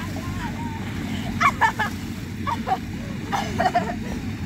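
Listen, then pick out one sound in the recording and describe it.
Water splashes as a young girl slides into a pool of water.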